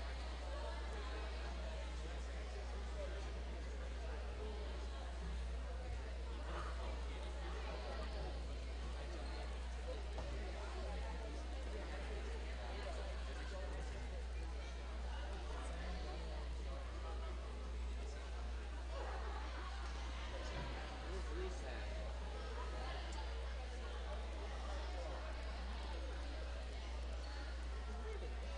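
A crowd of girls chatters in a large echoing gym.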